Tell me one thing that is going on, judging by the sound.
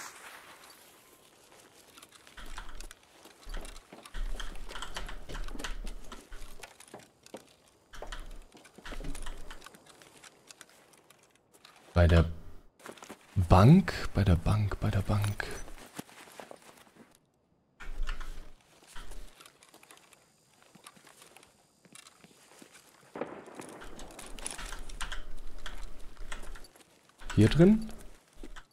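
An adult man talks into a close microphone.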